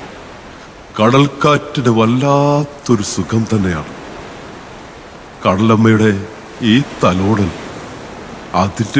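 A man speaks dramatically through a loudspeaker in a large hall.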